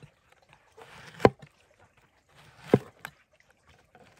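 A knife slices through a firm vegetable with sharp knocks.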